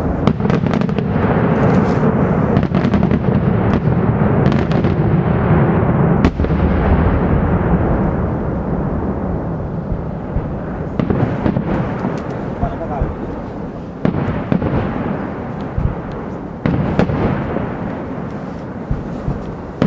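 Firework bursts rumble and echo off the hills.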